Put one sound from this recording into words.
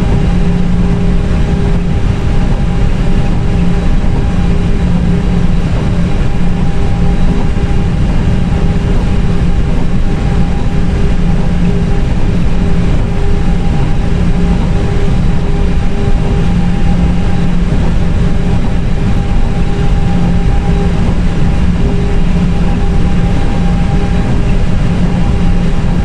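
Jet engines hum steadily while an airliner taxis.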